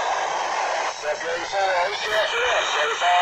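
A man speaks through a small radio loudspeaker, crackly and distant.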